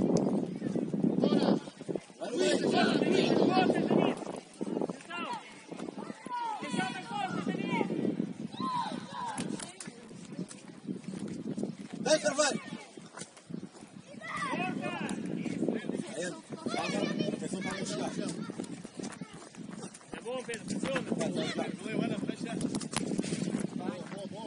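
Young male players shout and call to each other across an open outdoor pitch.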